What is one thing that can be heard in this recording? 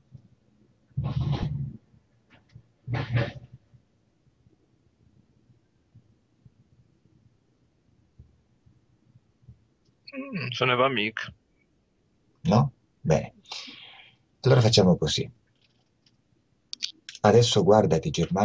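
A man speaks calmly in short phrases over an online call.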